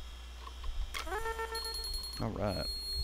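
A short electronic chime rings out as a notification.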